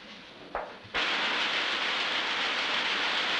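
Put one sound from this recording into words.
Weaving machines clatter loudly in a steady roar.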